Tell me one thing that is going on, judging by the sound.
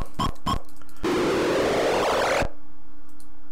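A harsh, hissing electronic burst roars from a game and then cuts off.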